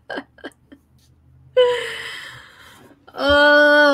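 A young woman laughs close to a microphone.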